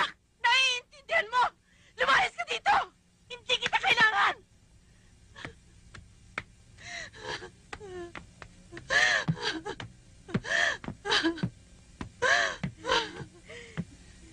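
A woman cries out and screams in distress.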